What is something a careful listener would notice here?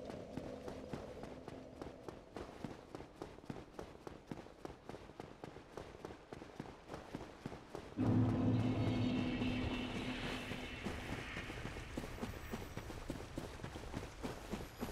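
Armoured footsteps run quickly over stone and grass.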